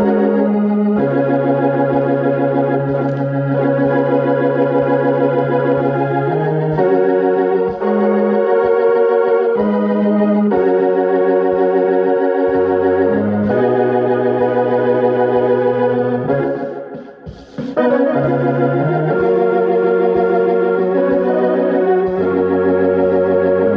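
A piano plays chords close by, with sustained ringing notes.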